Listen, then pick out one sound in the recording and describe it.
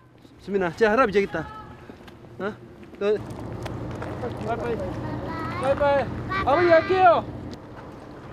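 A boy calls out loudly in a child's voice.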